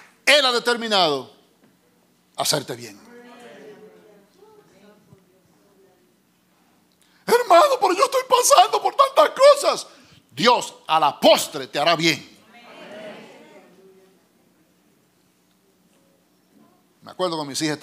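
A middle-aged man preaches with animation into a microphone, his voice echoing in a large room.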